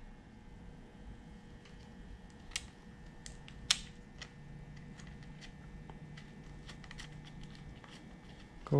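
A metal chain clicks and rattles softly as it is handled.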